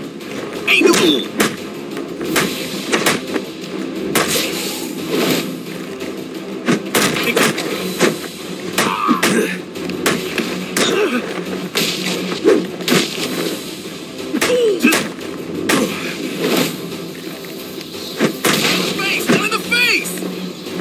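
Men grunt and cry out in pain as they are struck.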